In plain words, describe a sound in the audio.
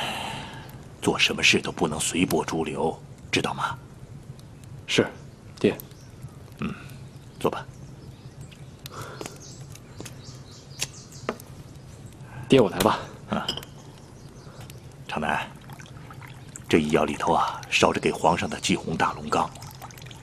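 A middle-aged man speaks calmly and earnestly nearby.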